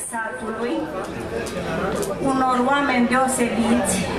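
An elderly woman sings into a microphone.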